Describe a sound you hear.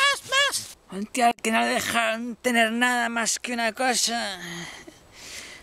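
A man speaks close up with animation, his voice rising and falling in a sing-song way.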